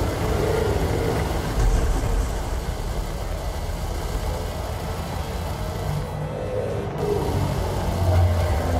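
A spaceship engine rumbles low and steady.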